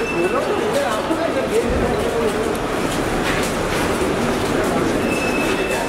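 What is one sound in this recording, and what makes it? A crowd of people talks and calls out nearby in a large echoing space.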